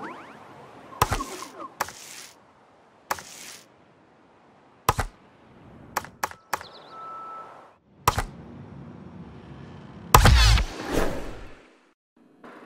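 Menu selection clicks and whooshes sound in quick bursts.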